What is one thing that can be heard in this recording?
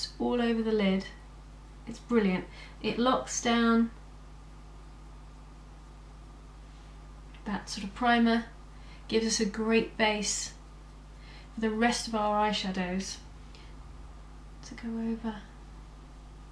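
A young woman speaks calmly and close to the microphone, in short phrases with pauses.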